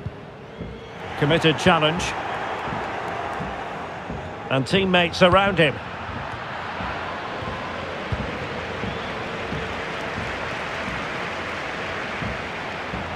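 A large crowd murmurs and roars steadily in a stadium.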